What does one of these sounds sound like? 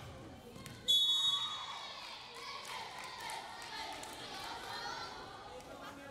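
Young women shout and cheer in an echoing hall.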